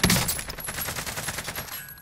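A rifle bolt clacks as a spent case is ejected.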